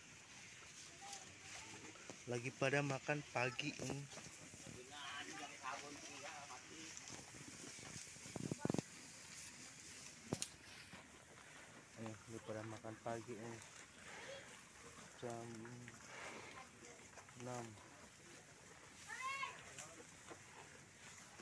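Cattle chew and rustle dry hay close by.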